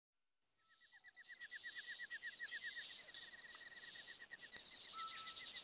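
Small birds chirp rapidly and steadily.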